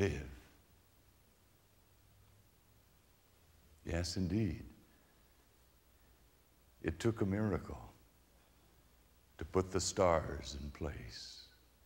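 A middle-aged man speaks with animation into a microphone, in short phrases with pauses.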